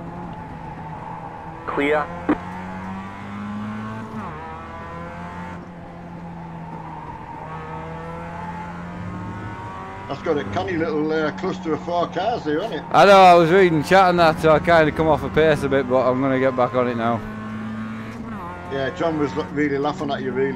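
A race car engine hums steadily, shifting pitch through gears.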